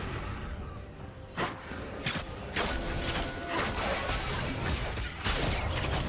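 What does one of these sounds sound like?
Magic spells whoosh and burst in quick succession.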